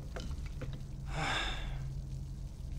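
A young man slurps a drink through a straw.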